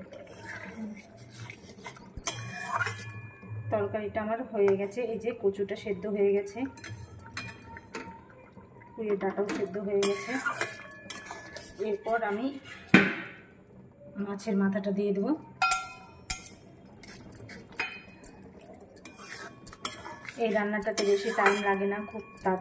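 A metal spoon scrapes and clinks against a metal pan.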